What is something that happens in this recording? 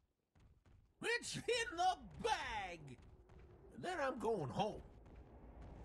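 Fantasy battle sound effects chime and whoosh in short bursts.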